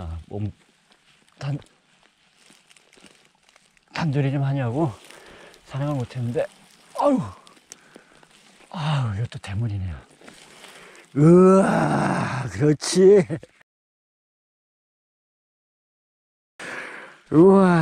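Hands scrape and dig through dry, crumbly soil.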